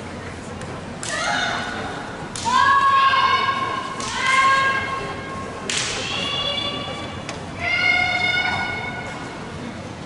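Young women shout loud, drawn-out cries in a large echoing hall.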